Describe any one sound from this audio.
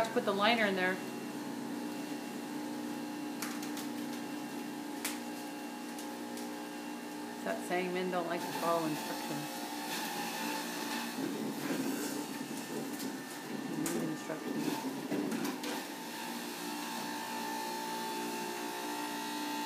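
A juicer whirs steadily.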